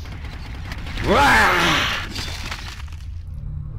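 A shark bites and thrashes in a sudden loud burst.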